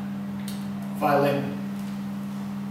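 A man speaks briefly, close by.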